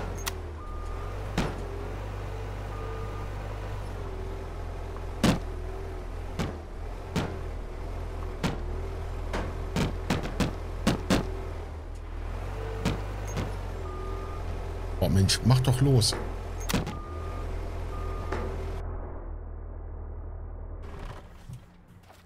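A heavy diesel engine drones steadily and revs.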